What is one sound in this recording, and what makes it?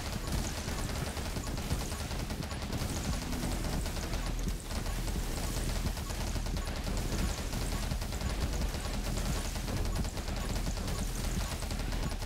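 Rapid game gunfire crackles and pops without pause.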